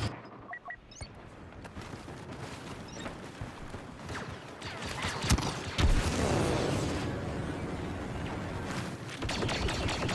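Laser guns fire repeatedly amid a noisy battle.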